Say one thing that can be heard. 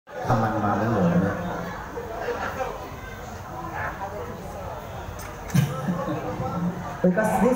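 A live band plays loudly through amplifiers.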